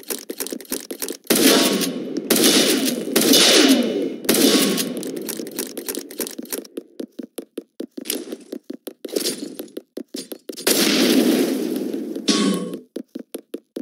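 A rifle fires in rapid bursts of sharp shots.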